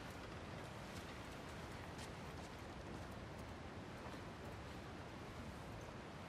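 Footsteps crunch over debris on a wooden floor.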